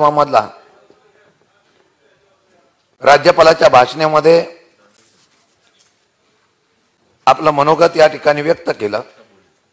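A man speaks firmly into a microphone in bursts, with pauses between.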